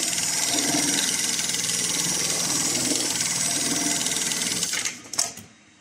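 An industrial sewing machine stitches rapidly with a loud steady whirr and clatter.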